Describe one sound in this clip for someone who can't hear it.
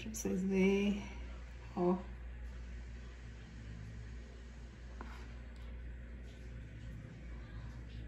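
A spoon scrapes softly against a plate.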